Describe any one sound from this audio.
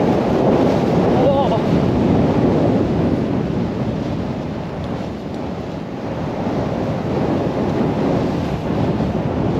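Wind rushes past a fast-moving rider.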